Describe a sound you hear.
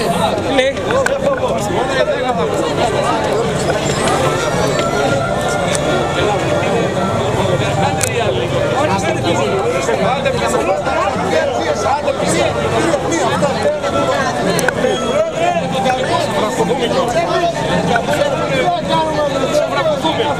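A crowd of men and women talk and shout over one another close by, outdoors.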